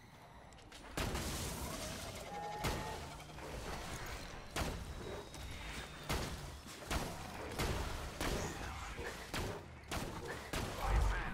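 A rifle fires sharp, loud shots again and again.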